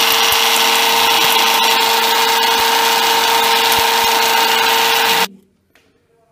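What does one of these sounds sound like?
An electric mixer grinder whirs.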